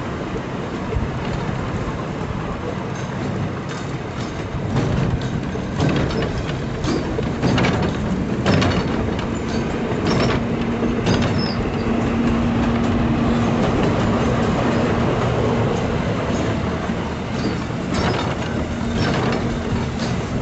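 Wheels clack over rail joints.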